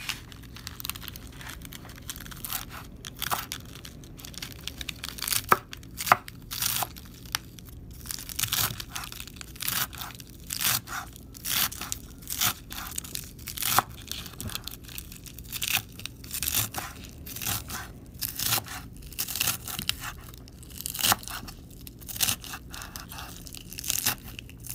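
A knife chops lettuce on a wooden board with repeated crisp thuds.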